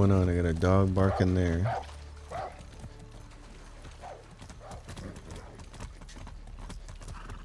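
A horse's hooves clop steadily on a dirt road.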